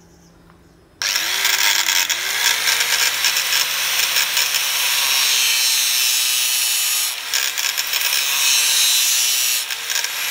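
An angle grinder whines loudly.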